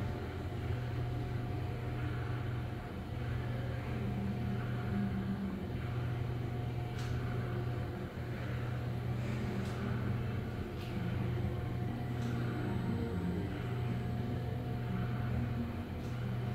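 An elevator hums steadily as it rises.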